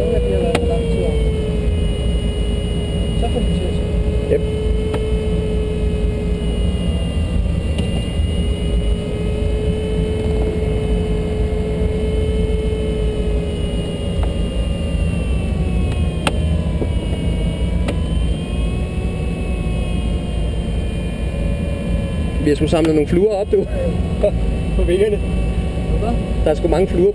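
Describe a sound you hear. Wind rushes steadily over a glider's canopy in flight.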